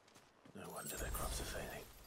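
A magical burst shimmers and whooshes.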